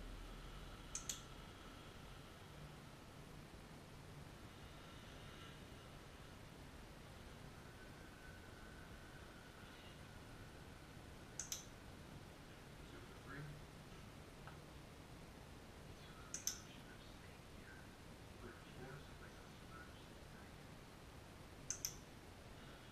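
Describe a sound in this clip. A clicker snaps twice in quick succession, now and then.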